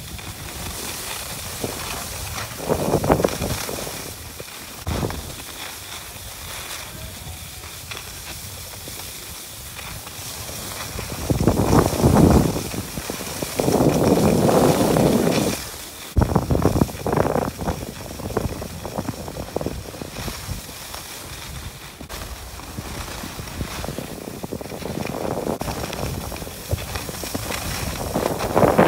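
Skis or a snowboard scrape and hiss over packed snow.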